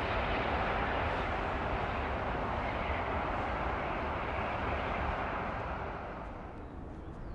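Jet engines roar loudly and steadily as an airliner taxis.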